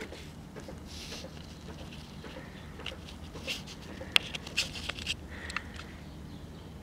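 A gloved hand scrapes and taps cardboard against metal.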